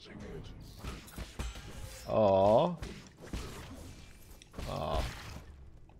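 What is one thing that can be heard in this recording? Sharp sword-slashing sound effects ring out in quick bursts.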